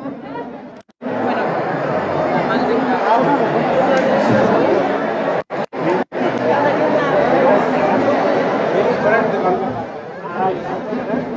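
A crowd of women and men chatters nearby.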